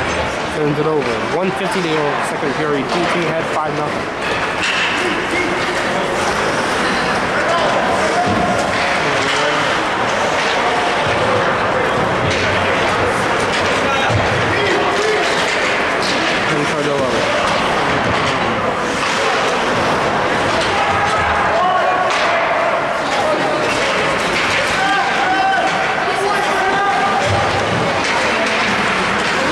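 Spectators talk and call out nearby.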